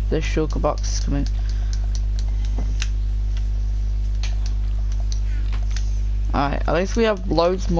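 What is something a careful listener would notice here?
Soft menu clicks tick now and then as items are moved.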